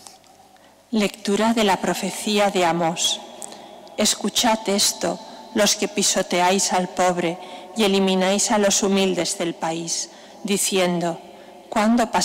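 A woman reads aloud calmly through a microphone in a large echoing hall.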